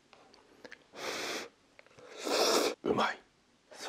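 A man loudly slurps noodles close by.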